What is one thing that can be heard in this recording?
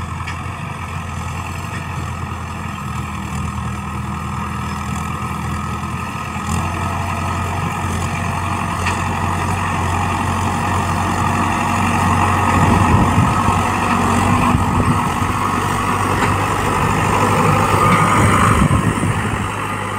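A mower behind a tractor chops through grass and soil.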